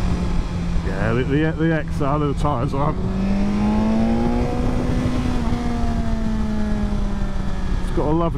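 A motorcycle engine hums and revs up and down.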